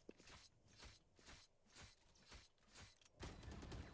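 Footsteps thud in a steady rhythm.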